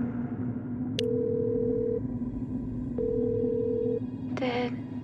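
A phone call rings out with steady beeping tones.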